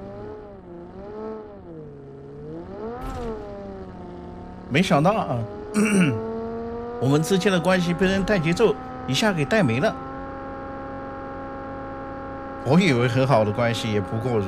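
A car engine hums and rises and falls in pitch.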